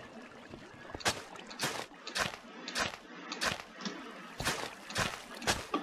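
Footsteps crunch on stone and gravel.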